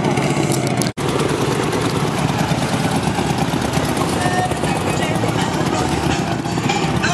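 A second motorcycle engine rumbles close by.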